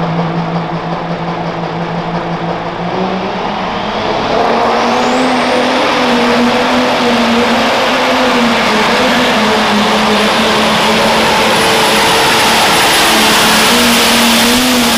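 A turbocharged diesel pulling tractor roars at full throttle under load.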